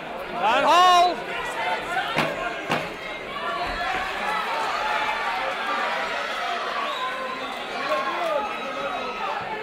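A crowd cheers and shouts loudly in a large hall.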